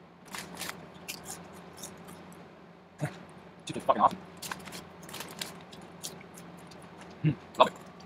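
A young man eats, chewing and smacking his lips.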